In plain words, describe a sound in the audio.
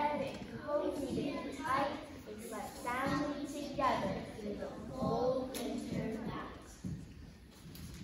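A child speaks through a loudspeaker in a large echoing hall.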